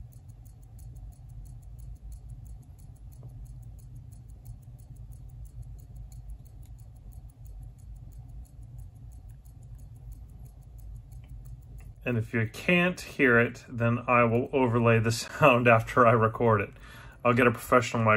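A wristwatch ticks softly and quickly up close.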